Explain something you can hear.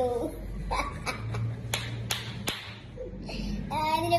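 A young boy claps his hands.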